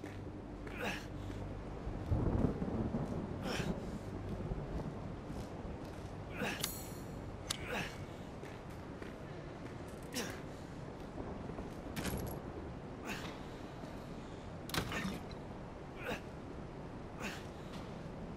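Slow footsteps creak on wooden floorboards.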